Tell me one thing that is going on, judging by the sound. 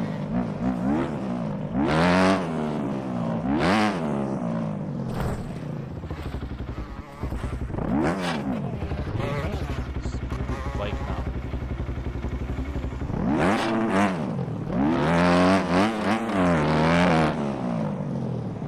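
A dirt bike engine revs up and down loudly.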